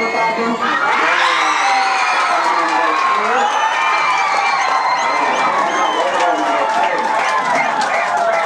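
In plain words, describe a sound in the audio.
A crowd of spectators cheers loudly.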